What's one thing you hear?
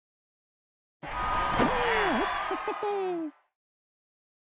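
A cheerful game fanfare plays with playful sliding tones.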